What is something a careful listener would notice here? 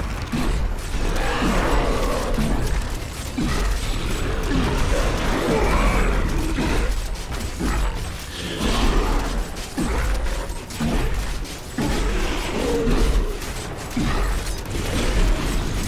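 Spells and weapons clash and boom in a fierce fight with a huge monster.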